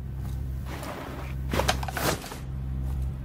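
A door swings open with a creak.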